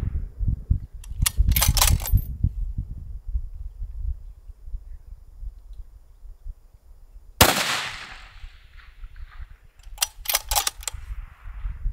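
Bullets strike steel targets with distant metallic pings.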